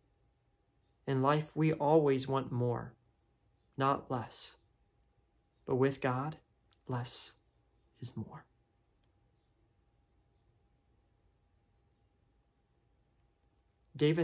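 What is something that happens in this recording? A young man speaks calmly and close up, in short phrases with pauses.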